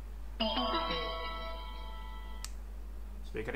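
A portable speaker plays a short rising electronic chime.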